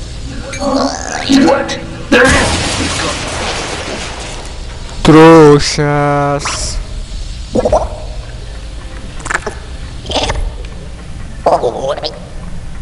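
Laser guns fire in short bursts.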